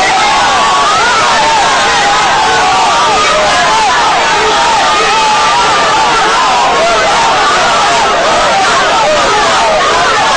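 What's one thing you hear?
A large crowd of men and women sings and chants loudly outdoors.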